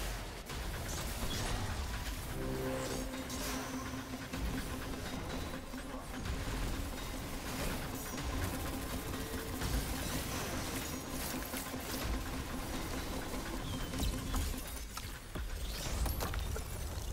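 Explosions rumble loudly.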